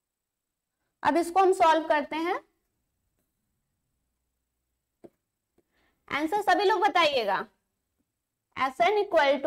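A woman speaks through a close microphone in short bursts, with pauses between them.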